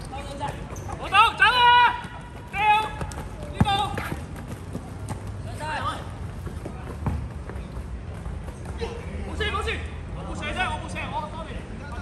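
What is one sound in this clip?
Sneakers squeak sharply on a court surface.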